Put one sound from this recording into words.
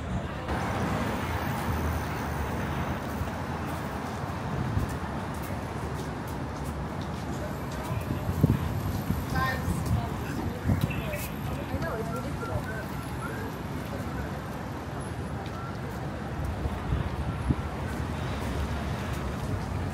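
Traffic rumbles steadily along a busy city street outdoors.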